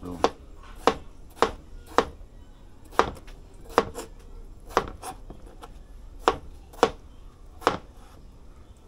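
A knife chops on a plastic cutting board in quick, sharp knocks.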